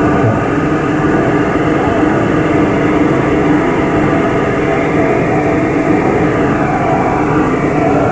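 A group of performers sings together on a stage, heard from a distance in a large hall.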